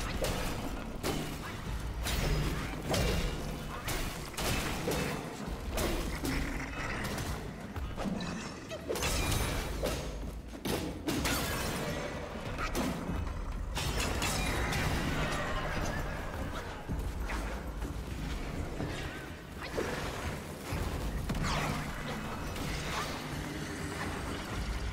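Swords clash and strike with sharp metallic hits, echoing in a large space.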